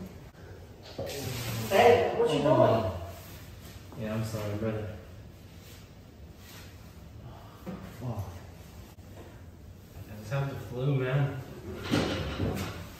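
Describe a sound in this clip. A young man talks in an echoing tiled room.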